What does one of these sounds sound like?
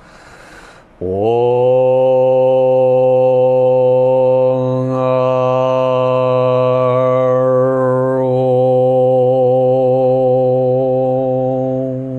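A man chants a long, steady low tone close to a microphone.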